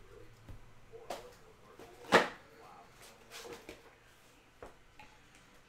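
Trading cards rustle and tap as they are handled.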